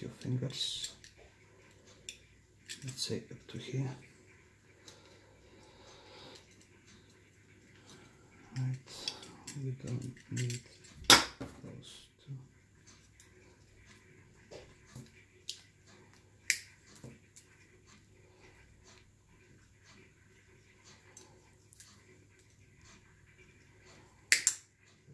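Plastic parts click and rattle in hands.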